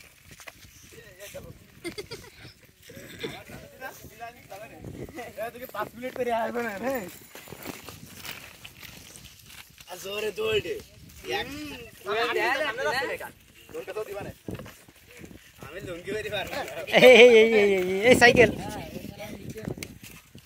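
Teenage boys talk and laugh close by, outdoors.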